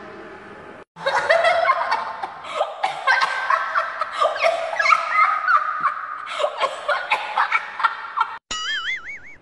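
A teenage boy laughs loudly with sneezing bursts close by.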